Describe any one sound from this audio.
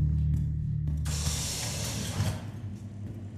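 A heavy sliding door hisses open.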